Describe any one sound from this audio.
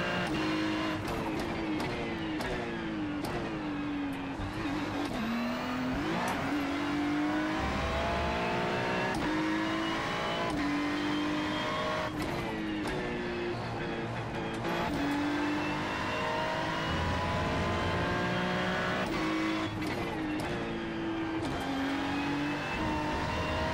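A racing car engine roars loudly, revving up and dropping sharply with each gear change.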